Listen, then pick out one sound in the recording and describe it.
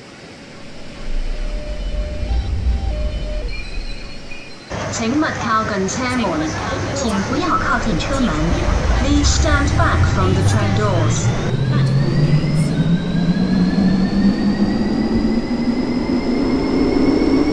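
A train rumbles as it pulls away.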